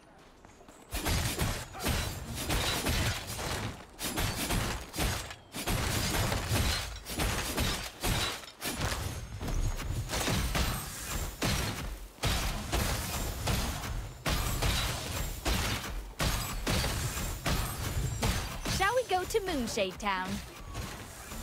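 Sword strikes land in rapid, sharp bursts.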